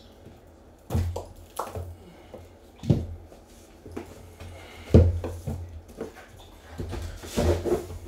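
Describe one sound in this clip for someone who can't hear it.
A cardboard box knocks down onto a table.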